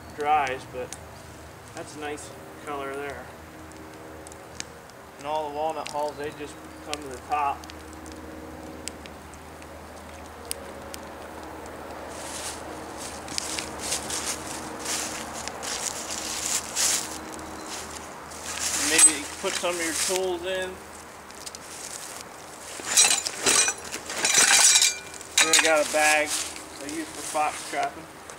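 A man talks calmly outdoors.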